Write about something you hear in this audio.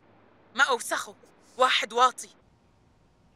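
A young woman speaks in a tearful, shaky voice close by.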